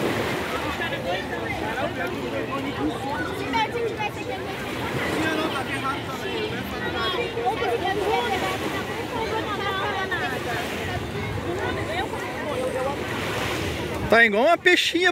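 A crowd of bathers chatters and calls out at a distance outdoors.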